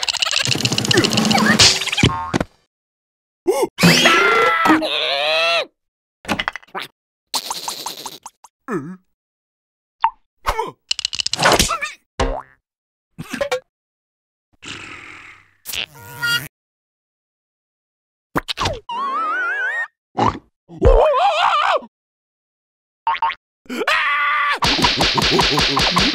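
Cartoon creatures babble and squeal in high, silly voices.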